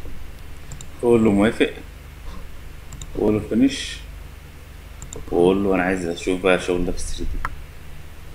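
A man speaks calmly and briefly into a close microphone.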